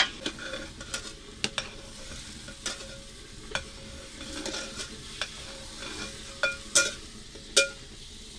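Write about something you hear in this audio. A metal spoon clinks against a pot.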